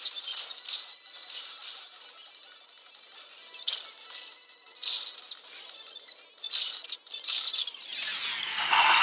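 Bright chiming effects pop in quick bursts as orbs burst.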